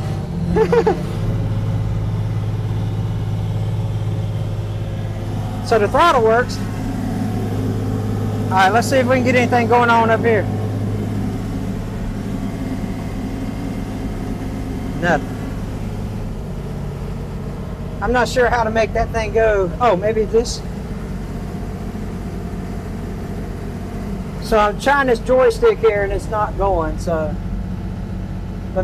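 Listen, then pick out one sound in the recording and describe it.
A diesel tractor engine rumbles steadily close by.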